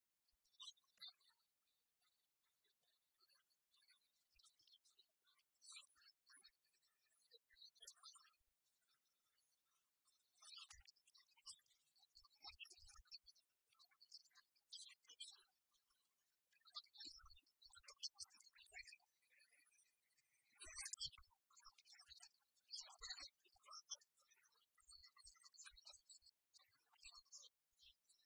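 Chiptune video game music plays throughout.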